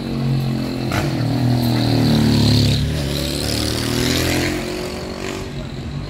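A motorbike engine drones close by and fades away.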